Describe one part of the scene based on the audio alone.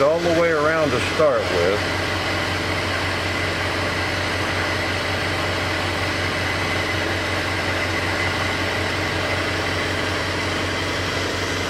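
A gas torch flame roars steadily.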